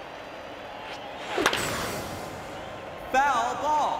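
A baseball bat cracks against a ball.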